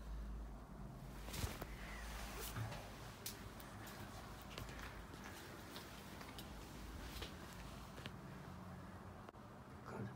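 A blanket rustles as it is pulled and tucked.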